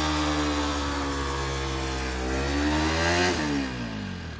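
A motorcycle's rear tyre screeches as it spins on the road.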